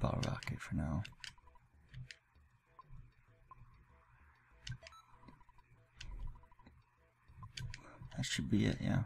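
Short electronic blips chatter as game text scrolls.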